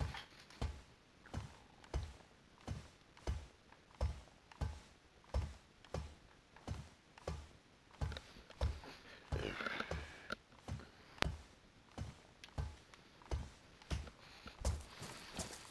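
Boots clank steadily on metal ladder rungs.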